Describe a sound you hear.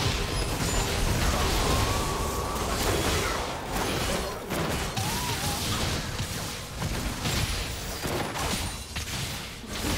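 Sword strikes and impacts clash repeatedly.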